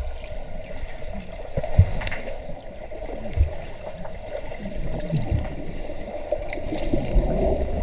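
Swimmers thrash and kick in the water, heard muffled underwater.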